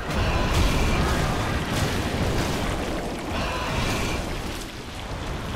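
Heavy footsteps stomp and thud on stone.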